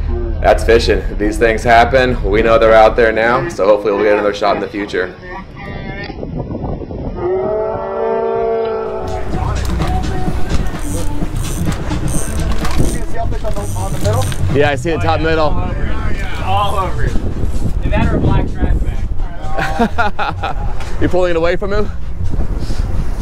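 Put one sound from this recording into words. Men talk with excitement close by.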